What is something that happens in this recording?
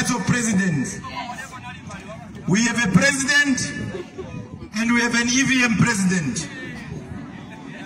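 A man speaks loudly into a microphone through loudspeakers outdoors.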